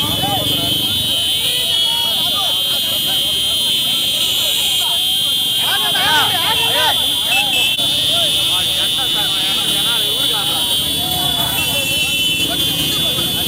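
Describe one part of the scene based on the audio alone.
A large outdoor crowd of men cheers and shouts all around.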